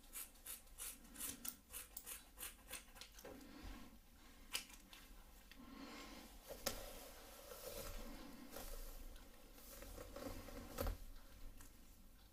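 Hair rustles as a comb passes through it.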